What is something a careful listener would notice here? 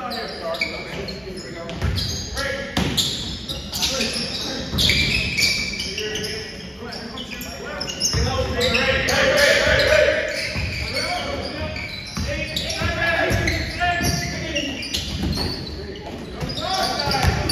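Spectators nearby talk and shout in an echoing gym.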